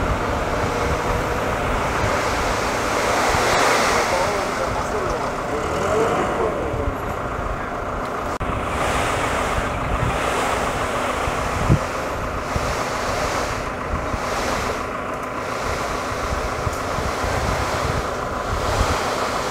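Soil pours and slides out of a tipping truck bed.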